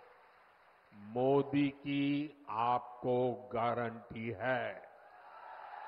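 An elderly man speaks forcefully into a microphone over loudspeakers.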